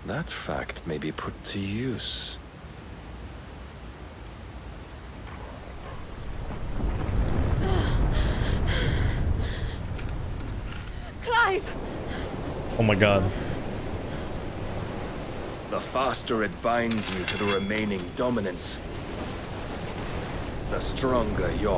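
A man speaks slowly in a low, calm voice.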